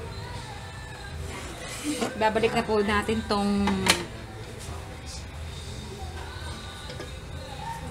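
A metal lid clanks against a pan.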